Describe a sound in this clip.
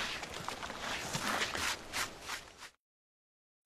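Fingers scrape and brush over gritty stone.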